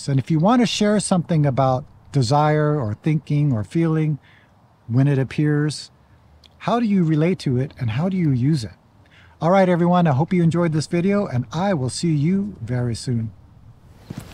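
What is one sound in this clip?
A middle-aged man talks calmly and with animation, close by.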